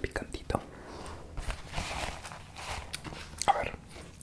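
A napkin rustles close by.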